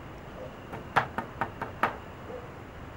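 A hand knocks on a wooden door.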